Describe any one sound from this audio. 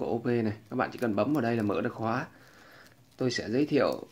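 A metal watch clasp clicks open.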